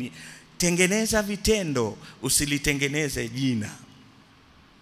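An elderly man preaches with animation through a microphone.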